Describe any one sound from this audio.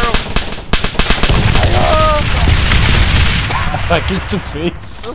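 A loud explosion booms close by and rumbles away.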